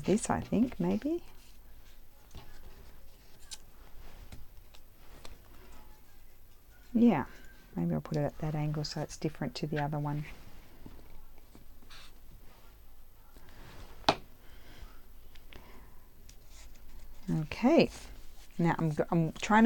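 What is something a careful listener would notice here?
Paper strips rustle and crinkle as hands move them around.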